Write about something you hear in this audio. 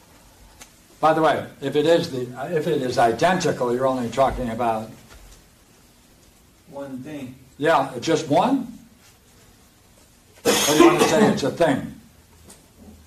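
An elderly man lectures with animation, pausing between phrases.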